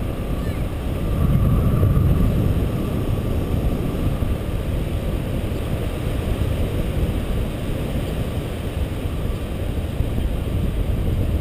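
A small aircraft's propellers whir steadily.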